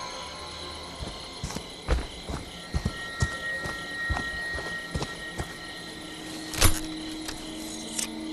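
Heavy footsteps crunch through dry leaves and twigs.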